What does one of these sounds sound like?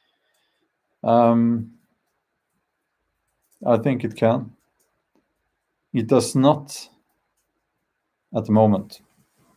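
A man speaks slowly and calmly close by, with long pauses.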